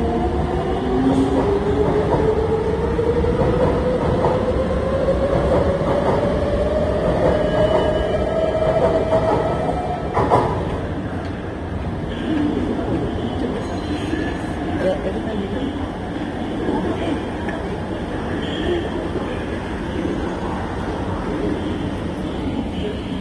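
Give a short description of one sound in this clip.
Train wheels rumble and clatter on the rails.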